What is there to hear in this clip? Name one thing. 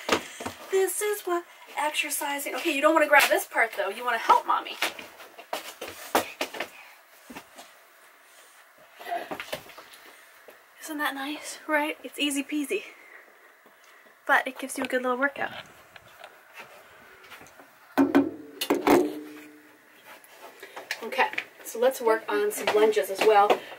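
A young woman talks calmly and cheerfully close by.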